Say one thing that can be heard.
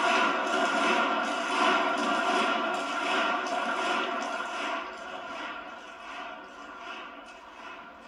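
A large crowd claps rhythmically in a big hall, gradually growing quieter.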